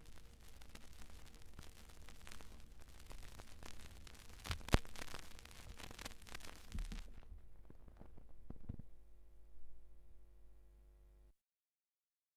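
A record crackles and pops as it spins under the needle.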